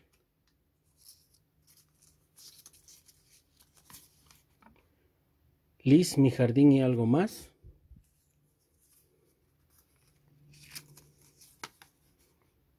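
Paper crinkles softly as it is folded by hand.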